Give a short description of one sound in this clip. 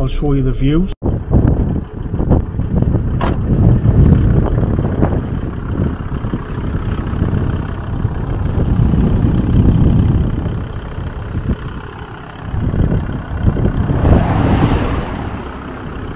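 Wind blows hard and buffets outdoors.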